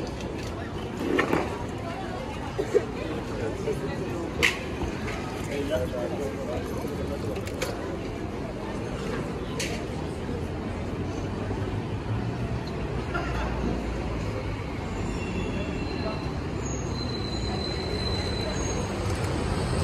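Voices of passers-by murmur nearby outdoors.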